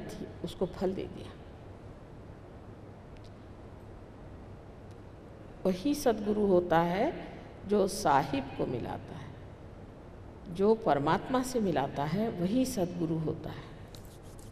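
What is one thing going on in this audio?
An elderly woman speaks calmly into a microphone, in bursts with pauses.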